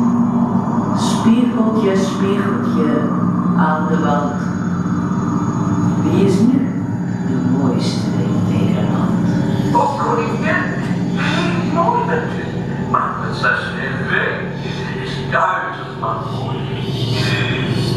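A woman speaks dramatically through a loudspeaker in an echoing room.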